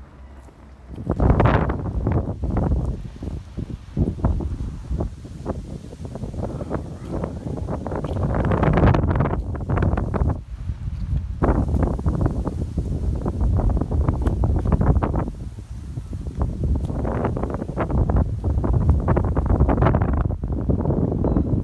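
Wind buffets and rumbles loudly outdoors.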